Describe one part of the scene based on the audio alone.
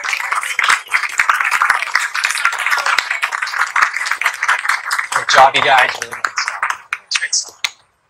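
A crowd cheers and claps loudly.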